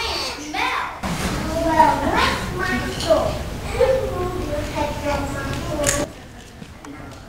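A second child speaks in a play.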